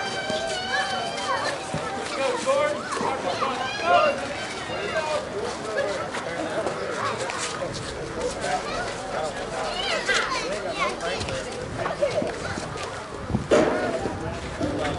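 Young women call out and chatter on an open field outdoors.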